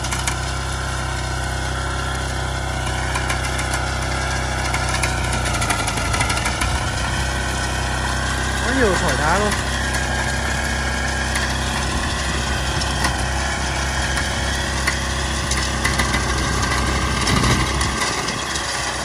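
A small engine chugs steadily close by.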